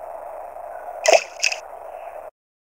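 A video game menu plays two short, bright electronic blips.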